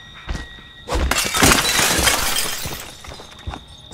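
A window rattles loudly as someone climbs through it.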